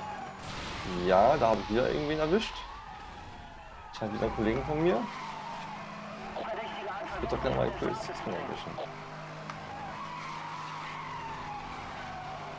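Tyres screech as a car slides through bends.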